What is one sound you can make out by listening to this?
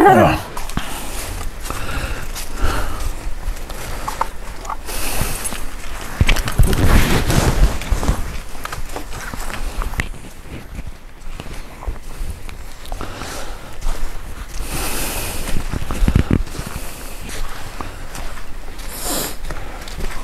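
Footsteps crunch through grass outdoors at night.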